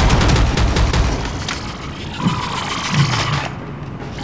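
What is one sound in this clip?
A heavy rifle is reloaded with metallic clicks.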